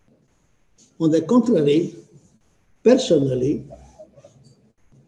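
An elderly man speaks calmly through an online call microphone.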